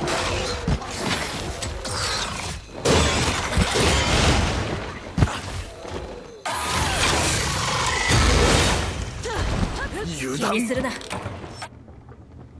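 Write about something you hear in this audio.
A huge monster roars.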